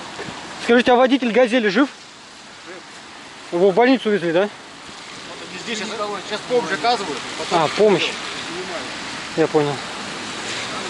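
A man talks nearby in short bursts.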